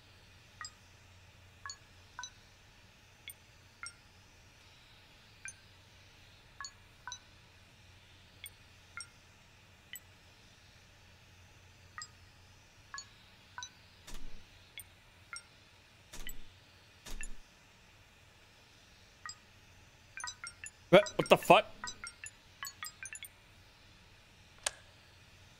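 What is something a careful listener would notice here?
Short electronic beeps sound with each keypad press.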